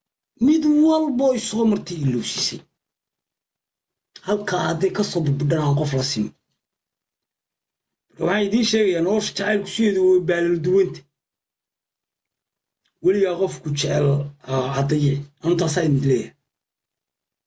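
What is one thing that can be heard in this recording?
A young man speaks with animation close to a microphone, in short bursts with pauses.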